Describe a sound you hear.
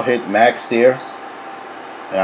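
A cooktop gives a short electronic beep as its button is pressed.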